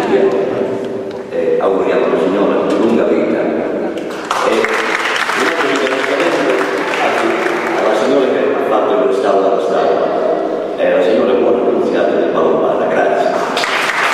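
A middle-aged man sings through a microphone in an echoing hall.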